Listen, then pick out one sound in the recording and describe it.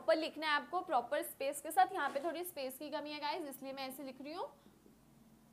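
A young woman speaks clearly and calmly into a nearby microphone.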